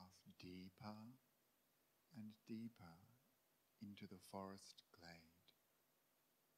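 A young man speaks calmly and slowly into a microphone, with long pauses.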